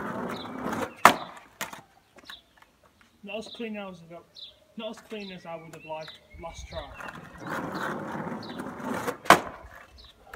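A skateboard pops and clacks on the road.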